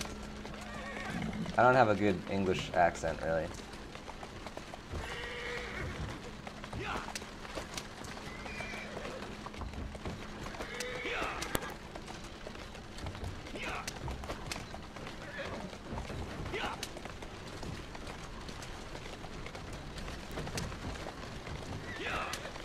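Horse hooves clop on cobblestones as a carriage rolls along.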